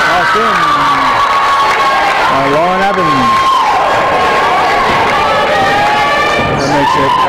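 Spectators shout and cheer from the stands.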